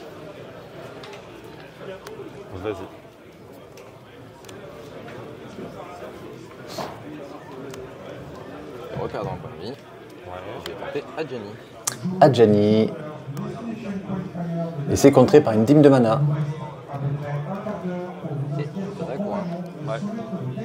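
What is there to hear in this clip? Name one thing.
Cards slap and slide softly on a mat.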